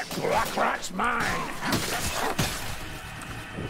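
A heavy weapon swings and strikes with a thud.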